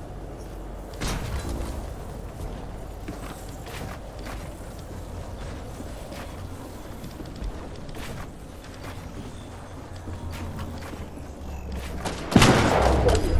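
Wooden building pieces knock and snap into place.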